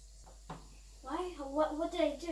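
A young girl speaks loudly nearby.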